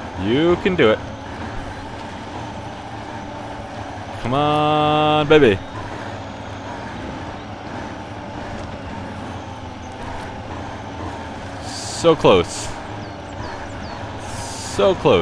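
A heavy truck engine rumbles steadily at low revs.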